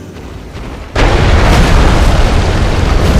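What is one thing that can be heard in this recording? A huge creature crashes and pounds heavily nearby.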